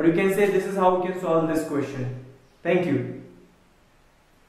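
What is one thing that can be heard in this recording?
A young man speaks calmly and clearly close to a microphone.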